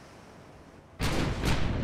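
A heavy explosion booms loudly.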